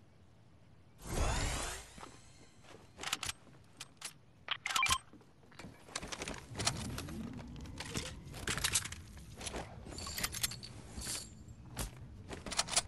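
Quick clinks and clatters sound as items are picked up one after another.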